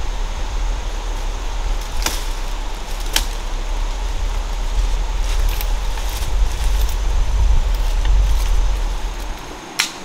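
A knife chops through branches.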